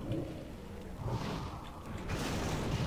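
A spell crackles and whooshes toward a target.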